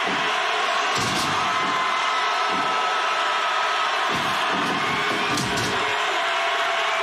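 Heavy bodies thud onto a wrestling mat.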